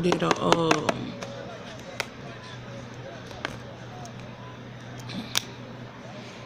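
A plastic container lid clicks and rustles.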